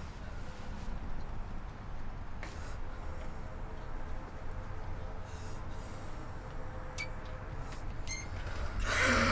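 A door handle rattles and clicks.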